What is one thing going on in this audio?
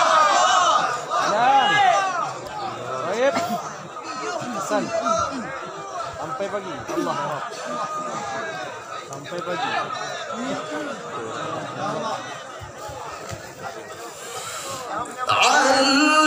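A large outdoor crowd murmurs.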